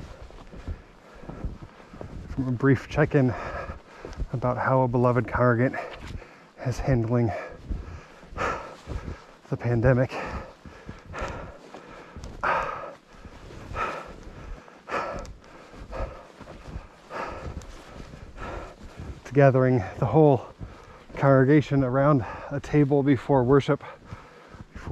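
Footsteps crunch and squeak through deep snow.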